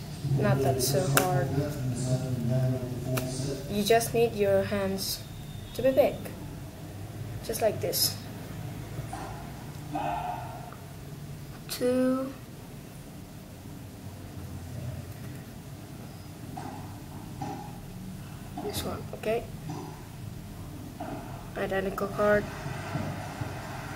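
Playing cards rustle and snap as they are handled.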